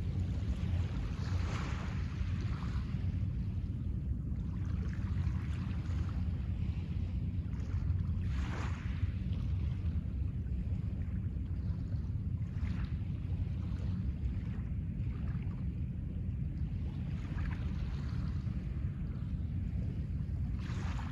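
Small waves wash gently onto a pebble shore.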